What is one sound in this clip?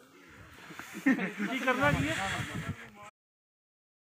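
A man talks nearby with animation.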